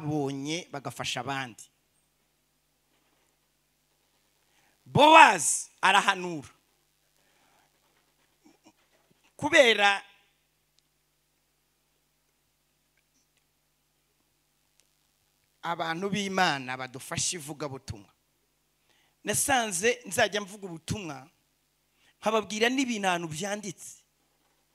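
A man speaks with animation into a microphone, with pauses between phrases.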